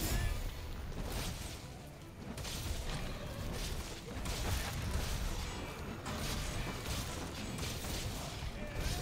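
Heavy blade strikes slash against a large beast again and again.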